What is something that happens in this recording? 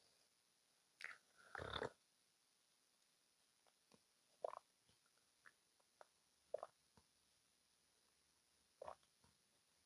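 A young woman sips and slurps a drink close to a microphone.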